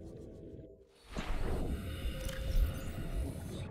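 Water rushes and splashes as a hatch opens.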